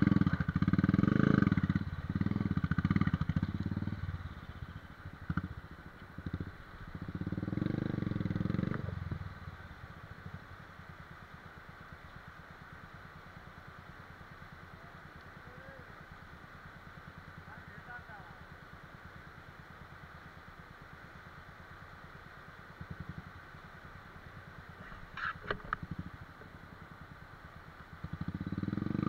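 A river rushes over rocks nearby.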